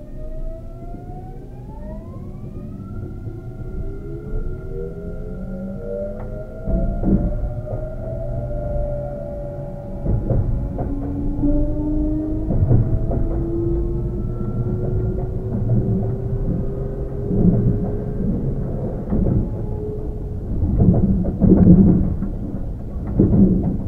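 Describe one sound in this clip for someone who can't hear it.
A train rumbles and clatters on the rails.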